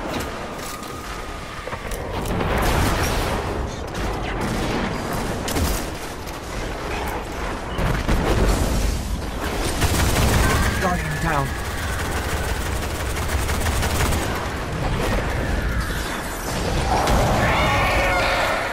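Guns fire rapid bursts of laser-like shots.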